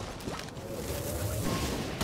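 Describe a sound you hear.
A bow twangs as arrows are shot.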